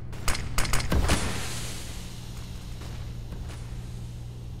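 A smoke grenade hisses steadily.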